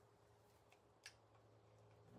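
A revolver clicks as its cylinder swings open.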